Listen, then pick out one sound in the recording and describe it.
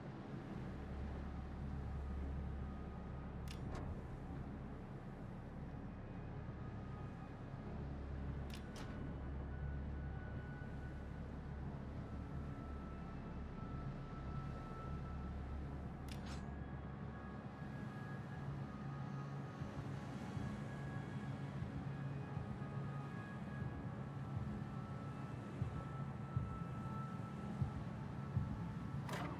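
Water rushes and splashes along a ship's hull.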